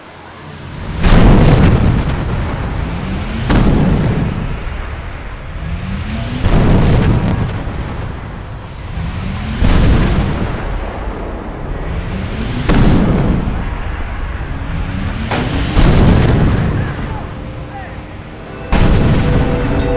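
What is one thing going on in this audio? A heavy body lands on pavement with a booming thud, again and again.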